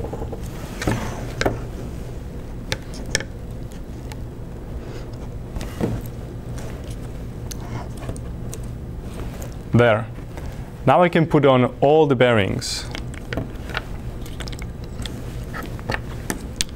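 Small plastic parts click and tap on a table.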